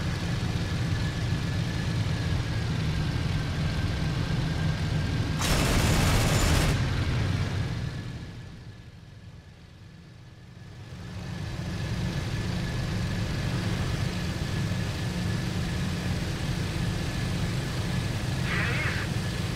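A propeller engine drones steadily, muffling for a moment and then swelling back.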